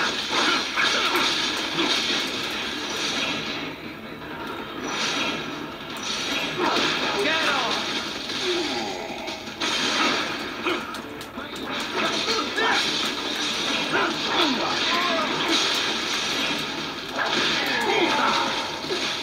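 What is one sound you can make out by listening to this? Swords clash and slash in a video game fight, played through a loudspeaker.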